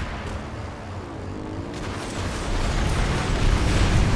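A quad bike engine hums steadily.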